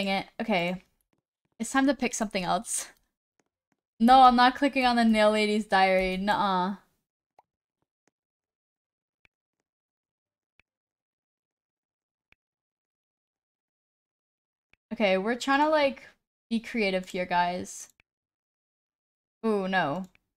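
A young woman talks with animation into a microphone, close by, in short bursts.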